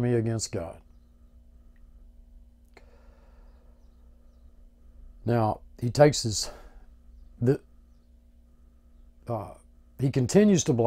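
An older man speaks calmly and close by, in short phrases with pauses.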